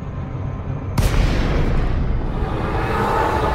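A spaceship drops out of high speed with a sudden loud whoosh.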